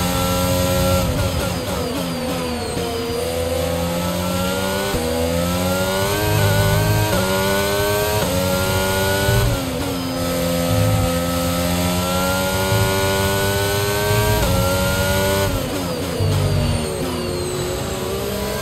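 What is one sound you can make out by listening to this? Gears downshift with quick engine blips under braking.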